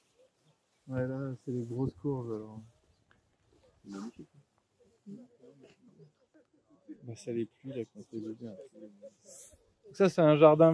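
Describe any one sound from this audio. A young man speaks calmly close by.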